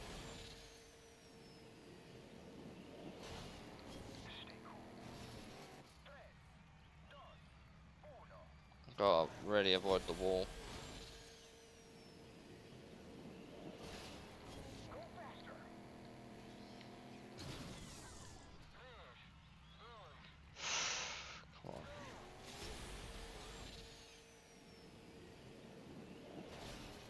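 A racing car engine roars and revs.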